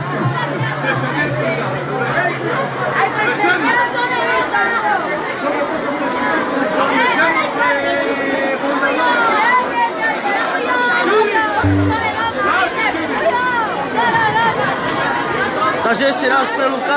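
A middle-aged man sings loudly into a microphone, heard through loudspeakers.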